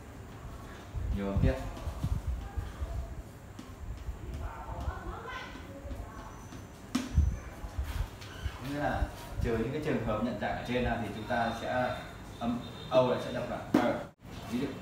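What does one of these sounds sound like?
A young man explains in a calm, teaching voice.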